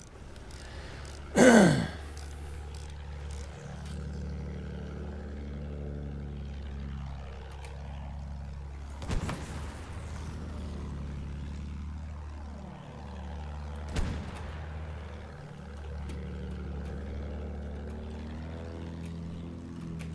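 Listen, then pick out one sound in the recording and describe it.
A biplane engine drones steadily.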